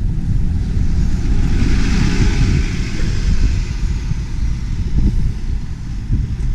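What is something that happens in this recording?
A bus drives past and moves away.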